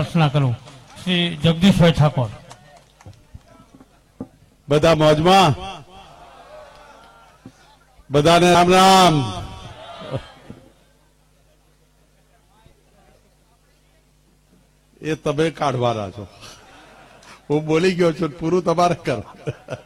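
A man makes a speech loudly through a microphone and loudspeakers, in bursts with pauses.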